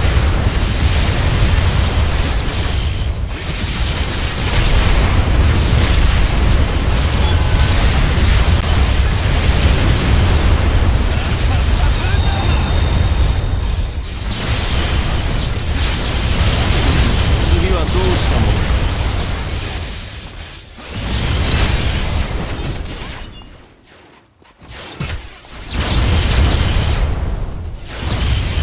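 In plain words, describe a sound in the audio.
Magic blasts whoosh and crash in a video game battle.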